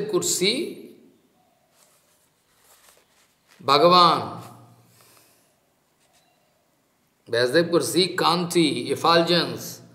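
An elderly man speaks calmly, with pauses.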